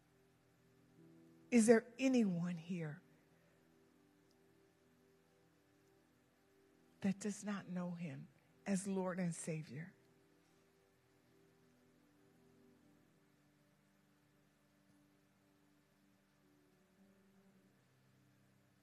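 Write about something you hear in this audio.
A keyboard plays soft, sustained notes in the background.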